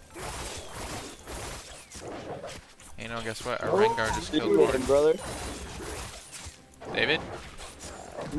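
Video game combat effects of blows and spells crackle and thump.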